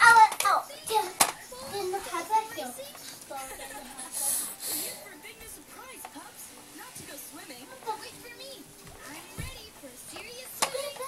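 A baby rattles a plastic toy truck.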